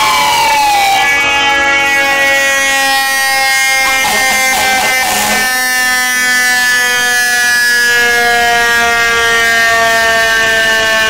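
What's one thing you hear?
A truck's air horn blares loudly and steadily.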